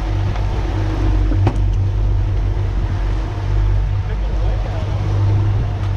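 A man strikes a fish with a club in a few knocks.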